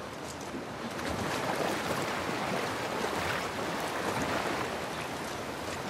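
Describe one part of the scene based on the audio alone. Water splashes as someone wades through a stream.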